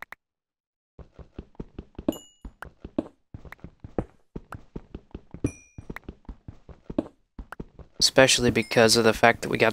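A pickaxe chips at stone with quick, dry taps.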